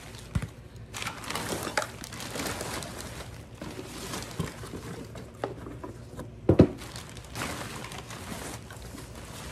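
Cardboard and objects knock and thump as they are moved.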